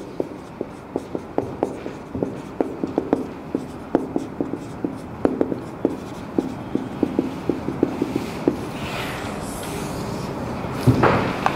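A marker taps and squeaks on a whiteboard.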